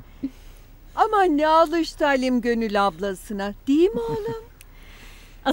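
An older woman speaks warmly, close by.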